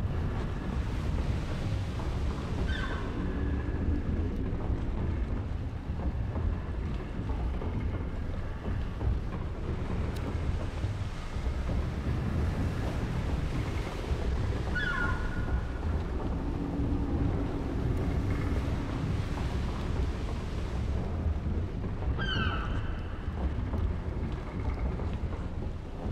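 A strong wind roars steadily outside.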